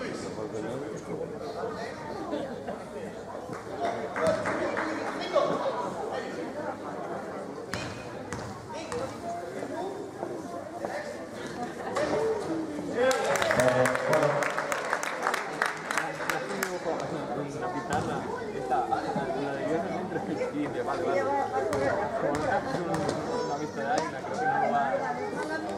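A crowd of spectators murmurs and chatters.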